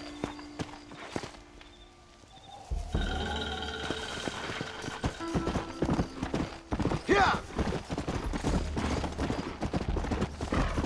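Horse hooves thud steadily on dry ground.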